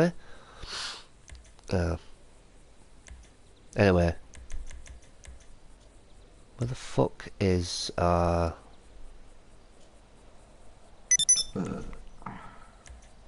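A man talks casually and close to a microphone, in short bursts.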